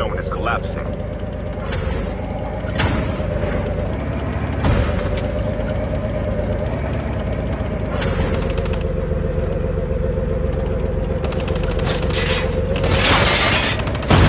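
A tank engine drones steadily.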